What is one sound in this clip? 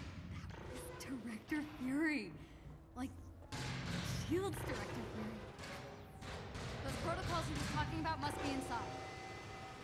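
A young woman talks calmly into a nearby microphone.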